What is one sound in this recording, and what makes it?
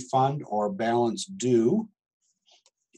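A middle-aged man speaks calmly into a microphone, close by.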